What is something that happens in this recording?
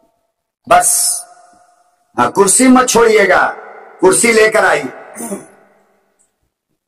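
A middle-aged man preaches forcefully into a microphone through a loudspeaker, his voice echoing.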